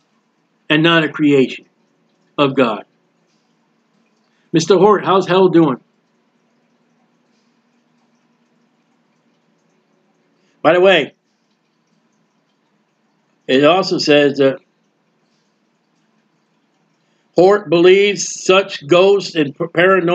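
A man speaks calmly in bursts over an online call.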